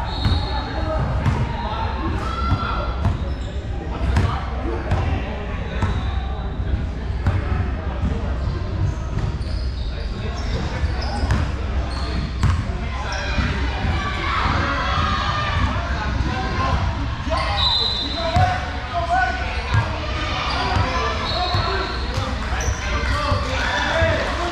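Young players chatter and call out across a large echoing gym.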